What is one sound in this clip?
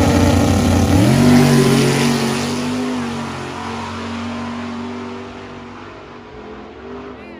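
A car engine shifts gear and roars away into the distance, fading.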